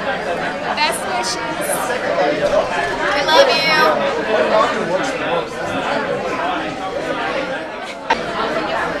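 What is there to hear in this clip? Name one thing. Young women chat and laugh close by.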